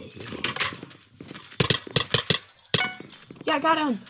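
A sword swings and strikes with quick sharp hits.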